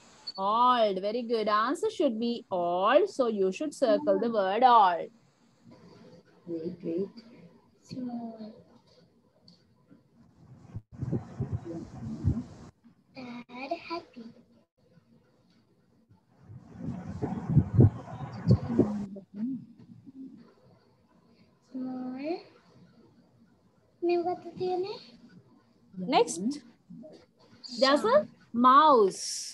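A child speaks over an online call, in short bursts.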